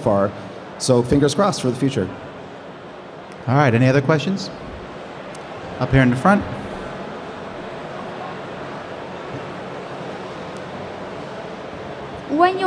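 A man speaks into a microphone in bursts, heard through a loudspeaker in a large room.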